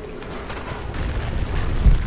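Footsteps scuff on stone steps.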